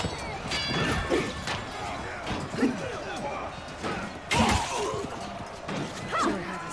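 Metal weapons clash and strike in a noisy battle.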